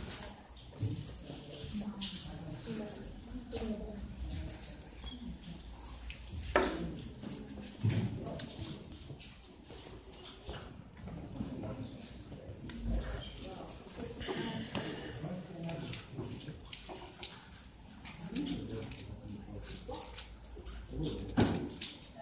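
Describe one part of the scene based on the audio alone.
A young woman talks quietly nearby.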